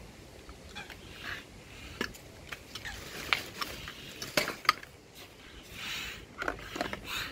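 A hand pump hisses with each stroke.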